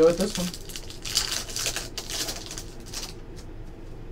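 Foil packs crinkle loudly as hands tear them open.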